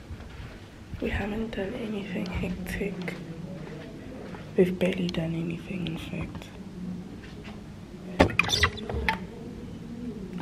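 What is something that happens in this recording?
A young woman speaks casually, close by.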